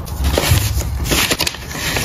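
A paper bag rustles as cards are pushed into it.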